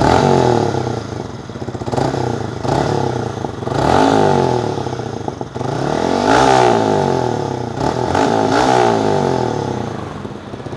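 A motorcycle engine revs up and down repeatedly, loud and close through its exhaust.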